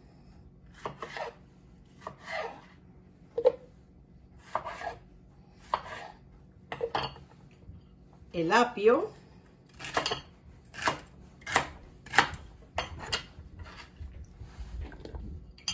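A knife chops on a wooden cutting board in quick taps.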